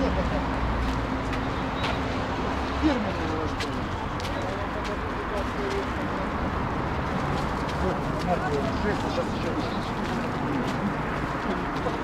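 Men and women chatter and murmur nearby outdoors.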